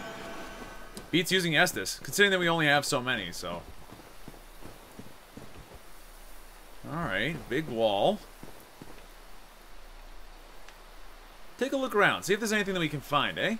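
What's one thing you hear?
Footsteps run over stone and grass.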